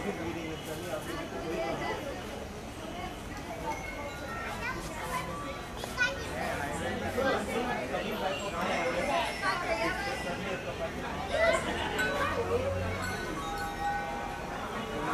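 Many men and women chatter nearby in a busy crowd.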